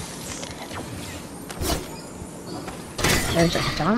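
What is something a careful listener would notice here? A weapon is picked up with a short metallic clatter.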